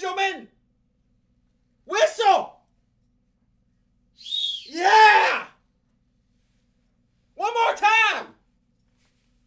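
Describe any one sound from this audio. A man speaks close to a microphone in short, animated bursts with pauses between them.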